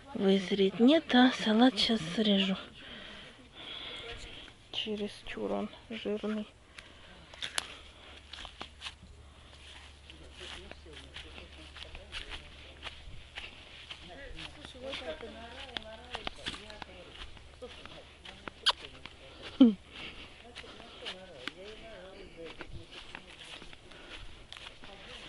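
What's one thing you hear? Footsteps tread over soft ground and grass.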